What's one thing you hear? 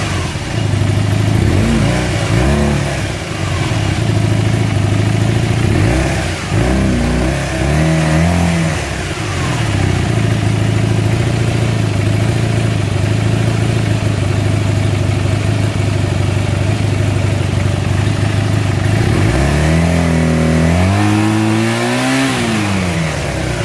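An engine revs up and down several times.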